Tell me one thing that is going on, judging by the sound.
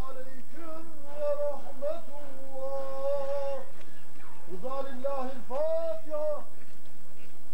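A man chants a prayer in a loud, drawn-out voice outdoors.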